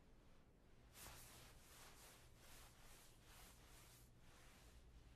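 A towel rubs across a face.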